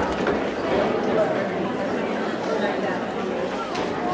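A woman's footsteps tap across the floor.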